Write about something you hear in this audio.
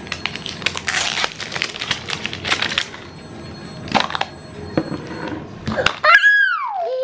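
Plastic wrappers crinkle and rustle close by.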